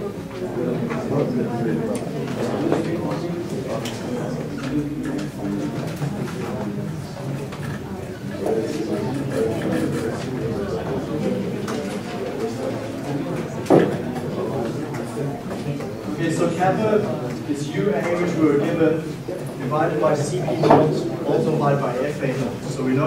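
A man lectures in a large room, heard from a distance.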